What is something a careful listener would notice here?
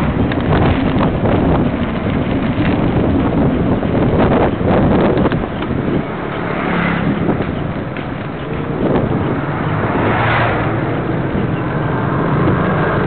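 A motorbike engine hums steadily while riding along a street.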